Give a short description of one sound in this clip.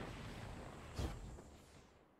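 A gun fires a single sharp shot.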